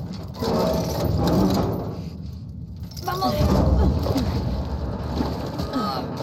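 A metal roller shutter rattles as it is lifted.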